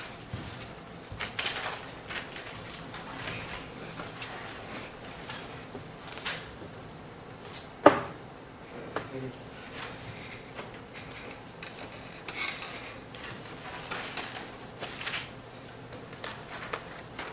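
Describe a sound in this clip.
A middle-aged man lectures calmly in an echoing room.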